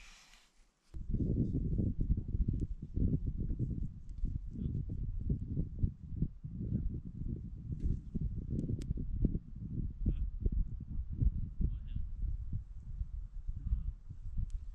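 Wind buffets the microphone outdoors in a low, gusty rumble.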